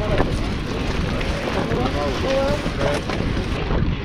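Bicycle tyres roll over paving stones.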